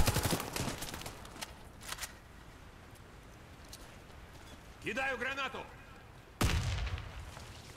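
Rapid rifle gunfire rings out in bursts.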